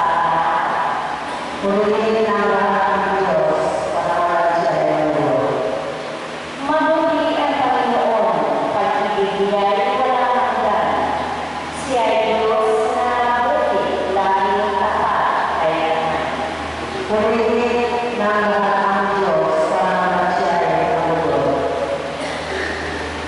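A woman sings slowly through a microphone and loudspeakers in an echoing hall.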